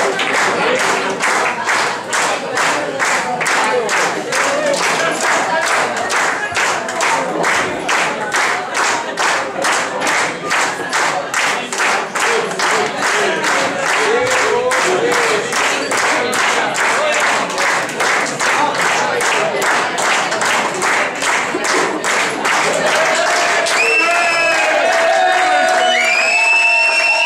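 Men and women in a crowd chatter and cheer.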